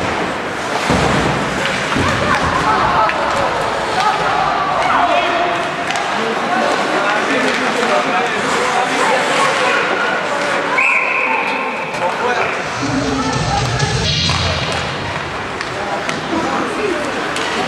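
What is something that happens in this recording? Skates scrape and hiss across the ice in a large echoing arena.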